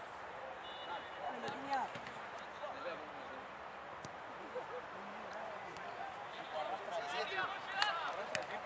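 Men shout and call out outdoors, some distance away.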